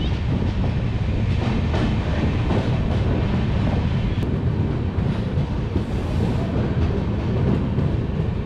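A train rolls slowly along with a steady low rumble.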